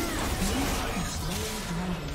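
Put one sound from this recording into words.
Spell effects whoosh and crackle in a video game.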